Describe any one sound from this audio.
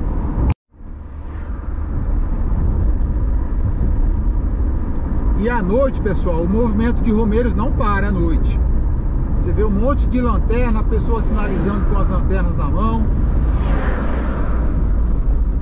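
A car engine hums and tyres rumble steadily on a paved road.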